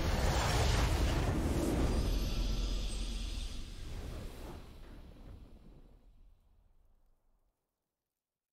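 A triumphant game victory fanfare swells and fades away.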